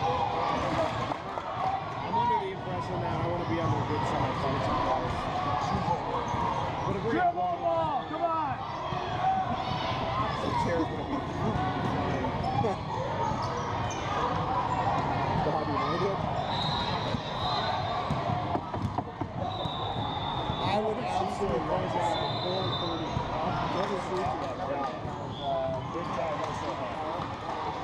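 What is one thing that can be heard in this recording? Spectators on the sidelines chatter and call out in a large echoing gym.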